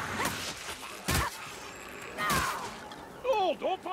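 Blades swish and slash through the air.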